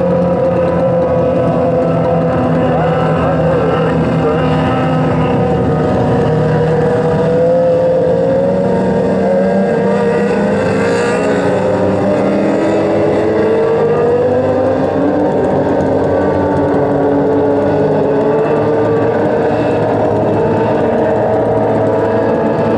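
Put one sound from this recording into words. Race car engines roar loudly, rising and falling in pitch.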